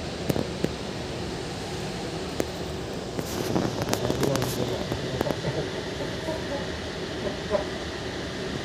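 A train carriage rattles and clicks as it moves.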